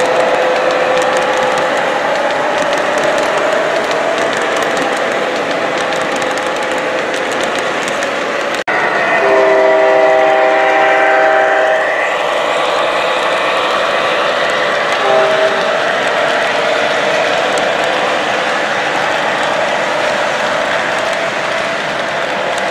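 An O gauge model freight train rumbles and clicks along metal track.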